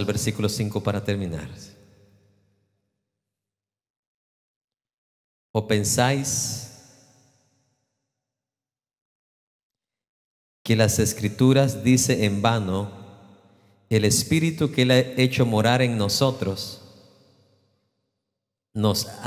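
A middle-aged man speaks slowly and earnestly into a microphone, in a large echoing hall, pausing between phrases.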